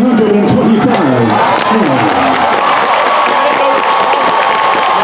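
A large crowd murmurs and cheers in the stands.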